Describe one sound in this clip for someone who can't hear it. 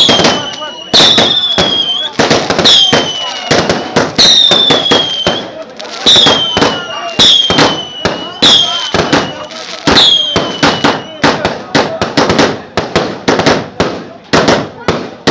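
Fireworks burst with loud, sharp bangs and crackles in quick succession.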